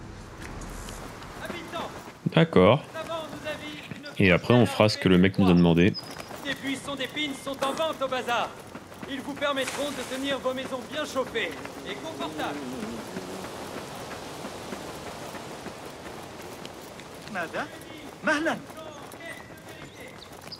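Footsteps run quickly over stone and dirt.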